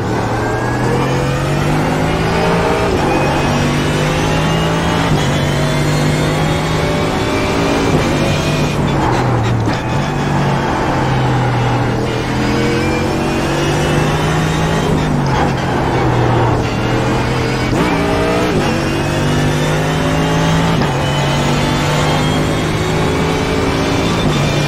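A racing car engine roars loudly, revving up through the gears and dropping on braking.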